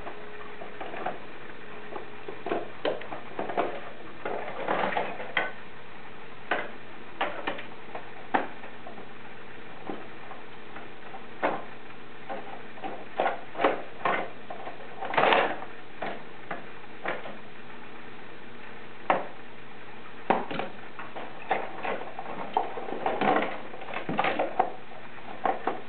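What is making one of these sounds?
Plastic toys knock and rattle as small children play.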